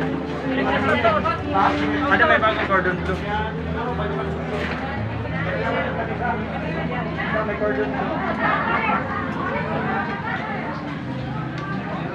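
Several men and women chat over one another nearby.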